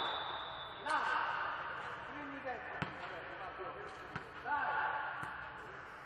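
A ball thumps off hands in a large echoing hall.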